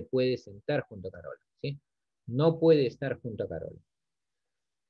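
A man speaks calmly into a microphone, as over an online call.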